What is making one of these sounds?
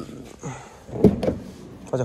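A car's rear door handle clicks as it is pulled.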